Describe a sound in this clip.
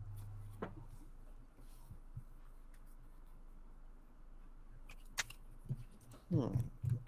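Playing cards slide and tap softly on a table.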